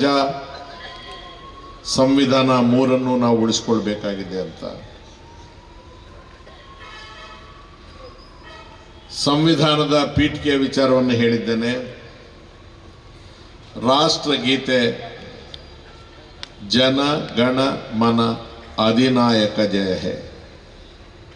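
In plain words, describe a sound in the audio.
An elderly man speaks forcefully into a microphone, heard through loudspeakers in short bursts with pauses.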